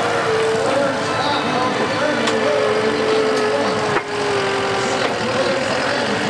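A loader engine idles close by.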